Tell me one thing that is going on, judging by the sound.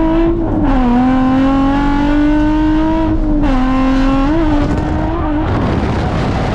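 A car engine roars loudly from inside the cabin, its pitch dropping briefly with each gear change.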